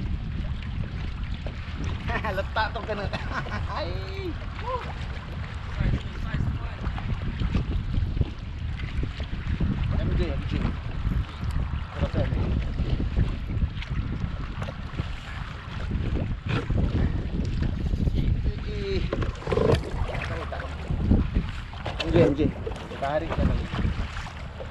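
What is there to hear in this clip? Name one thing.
Small waves lap and splash against a boat.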